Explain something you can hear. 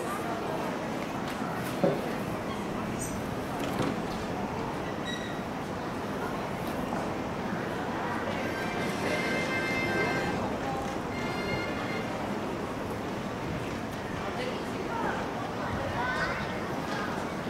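Crowd noise murmurs steadily in an open stadium.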